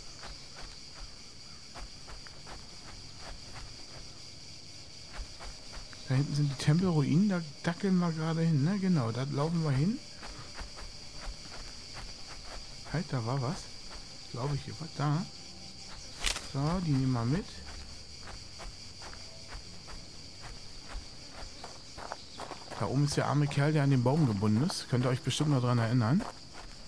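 Footsteps swish through grass and crunch on gravel.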